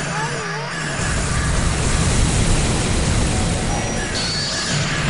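A loud blast of energy roars and rumbles.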